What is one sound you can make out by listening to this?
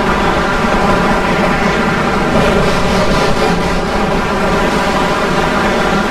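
Laser weapons fire rapidly in a battle.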